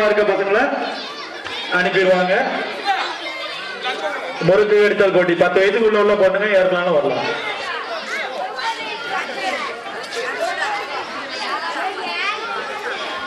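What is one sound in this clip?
Children chatter and shout excitedly outdoors.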